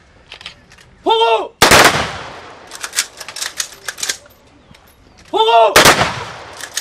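A man shouts a drawn-out command loudly.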